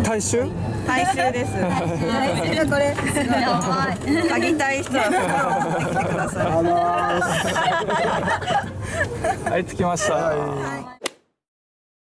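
Young women talk and laugh together with animation, close by.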